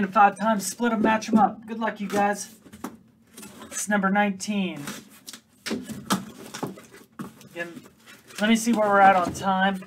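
A cardboard box slides and scrapes on a table.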